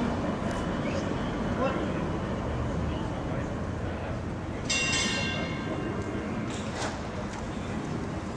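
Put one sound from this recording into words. A tram rolls slowly over the rails with a low rumble.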